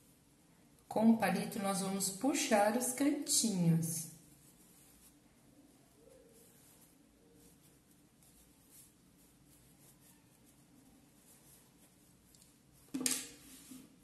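Fabric rustles softly as it is folded.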